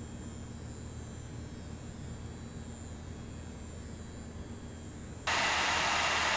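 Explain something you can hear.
A computer hums quietly with a low, steady whir.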